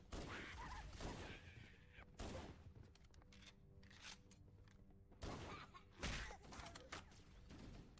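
Gunshots blast in short bursts.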